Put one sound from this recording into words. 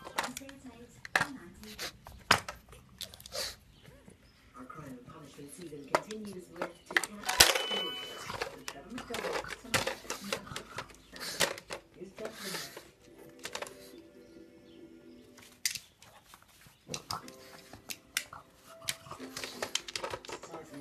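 A plastic toy clatters and knocks on the floor.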